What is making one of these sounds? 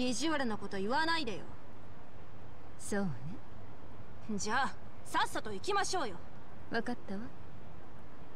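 A young woman speaks with animation.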